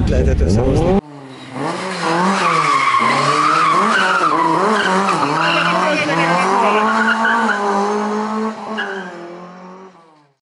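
A car engine revs hard as the car slides around a bend.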